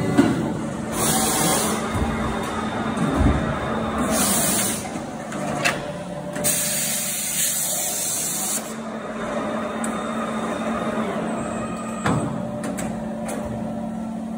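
Metal parts clank and knock inside the machine.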